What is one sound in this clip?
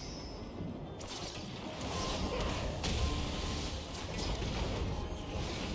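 Game spell effects whoosh and crackle during a fight.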